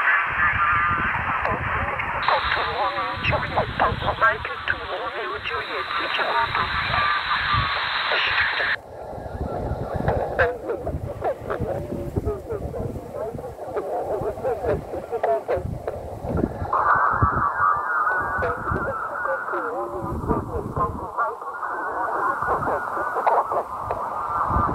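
A thumb clicks buttons on a radio's keypad.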